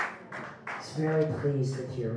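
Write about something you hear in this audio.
A young woman sings into a microphone close by.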